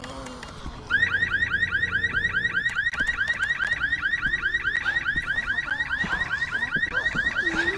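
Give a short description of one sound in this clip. An alarm beeps rapidly and steadily.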